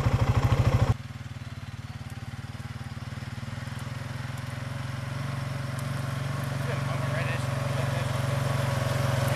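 A vehicle engine rumbles as it drives away.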